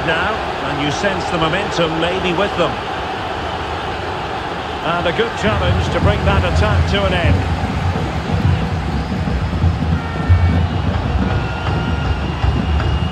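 A large stadium crowd roars steadily, swelling louder partway through.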